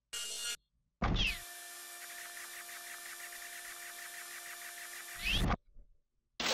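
A laser drill hums steadily and buzzes.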